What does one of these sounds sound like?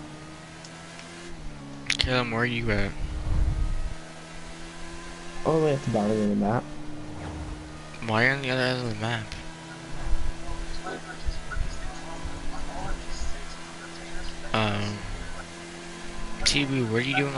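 A motorcycle engine hums steadily as the bike rides along.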